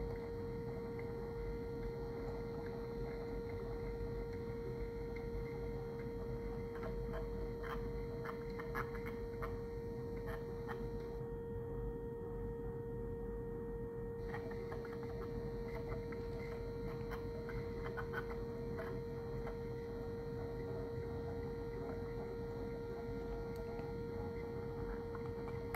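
A small motor whirs as a siren horn turns.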